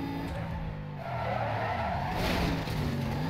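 Tyres screech as a car slides through a turn.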